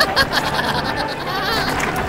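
A young boy shouts with strain.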